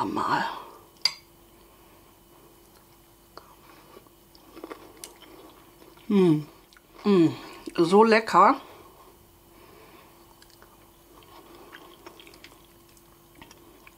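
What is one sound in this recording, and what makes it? A metal spoon scrapes against a ceramic bowl.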